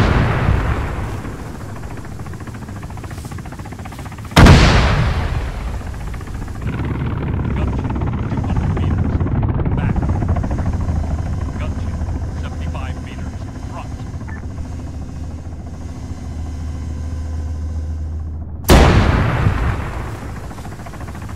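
A heavy vehicle engine rumbles low and steadily.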